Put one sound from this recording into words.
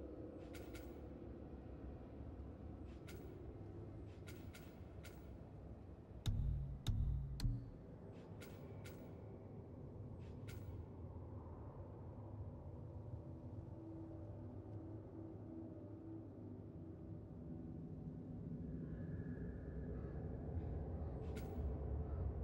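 Soft menu clicks tick as selections change.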